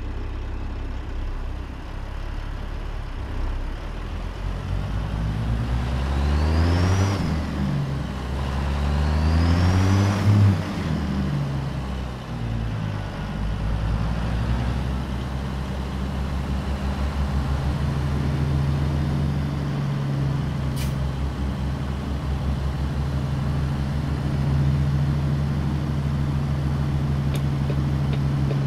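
A truck's diesel engine rumbles steadily, revving up and down as it shifts gears.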